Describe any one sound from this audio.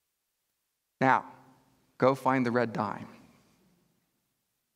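A middle-aged man speaks with animation through a headset microphone.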